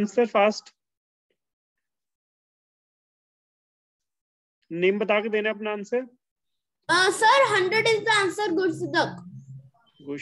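Children speak by turns over an online call, with pauses between.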